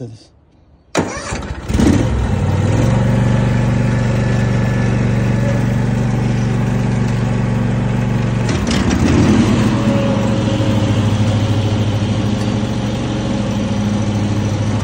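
A riding lawn mower engine drones steadily up close.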